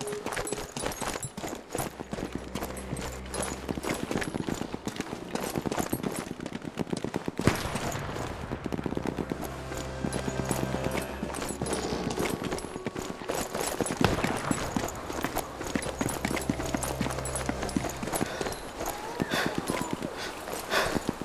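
Footsteps clatter quickly on hard floors and wooden stairs.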